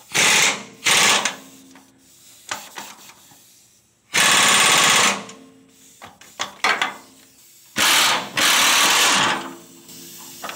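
An air impact wrench rattles in short loud bursts.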